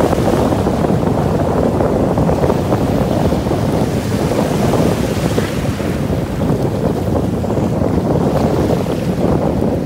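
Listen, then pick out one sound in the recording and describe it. Waves wash and break, with strong wind outdoors.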